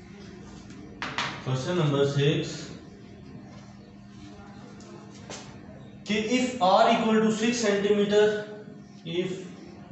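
A young man speaks clearly and calmly, close by, as if teaching.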